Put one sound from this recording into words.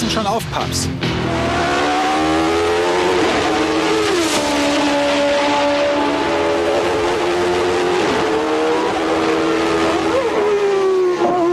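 A racing car engine roars, its pitch rising and falling as the car speeds along.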